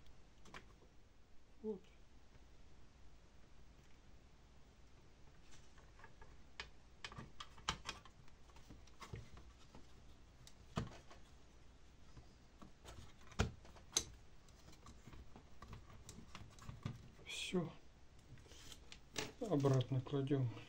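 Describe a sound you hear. Hands handle a circuit board, with light knocks and clicks on a table.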